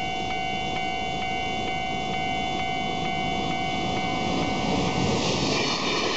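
A railway crossing bell rings steadily and quickly.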